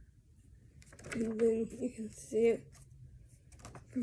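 Paper rustles as a booklet is handled.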